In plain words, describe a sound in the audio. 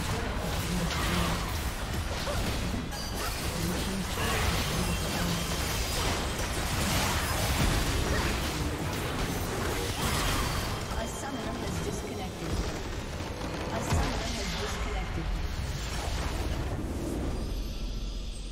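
Game spell effects and attacks crackle and burst in quick succession.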